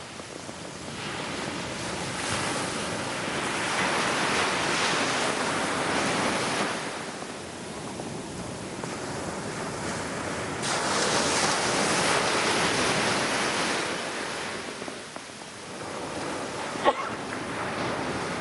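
A sea turtle flings sand with its flippers.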